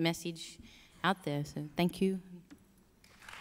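A young woman speaks into a microphone in a slightly hesitant voice.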